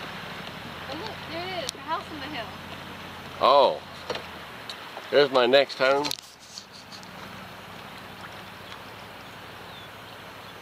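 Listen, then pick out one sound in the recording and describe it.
River water laps softly against a boat.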